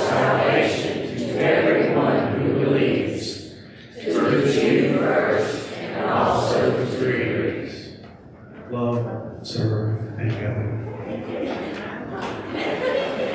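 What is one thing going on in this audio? A piano plays along with the singing.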